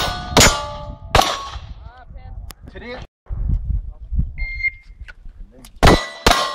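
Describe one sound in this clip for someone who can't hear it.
Pistol shots crack loudly outdoors, one at a time with pauses between.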